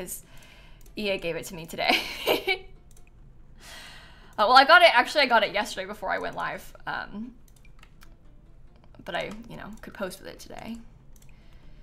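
A young woman talks and laughs with animation, close to a microphone.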